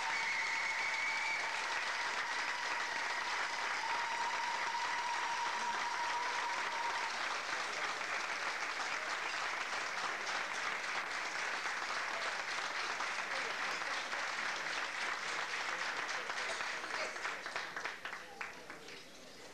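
A crowd applauds steadily and then fades out.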